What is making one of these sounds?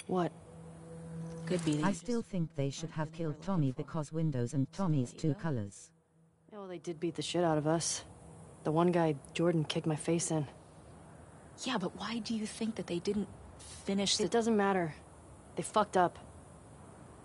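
A young woman talks calmly.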